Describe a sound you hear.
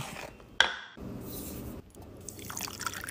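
Water pours into a wooden bowl.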